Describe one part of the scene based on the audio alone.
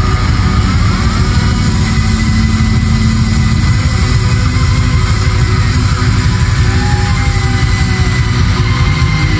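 A rock band plays loudly in a large hall, with electric guitars and drums.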